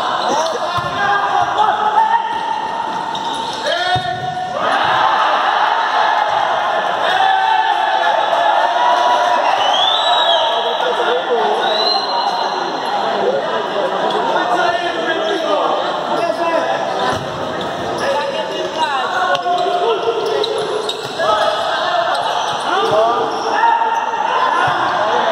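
Men shout and call out across a large echoing hall.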